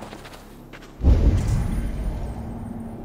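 A heavy thud lands, followed by a rumbling rush.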